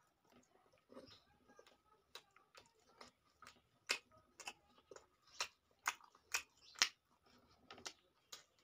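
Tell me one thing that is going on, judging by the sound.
A man chews and smacks his lips loudly close up.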